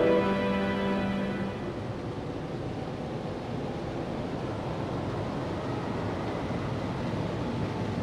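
Waves lap against the hull of a vessel on open sea.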